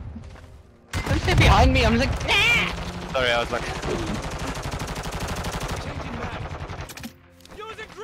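A rifle fires in rapid bursts nearby.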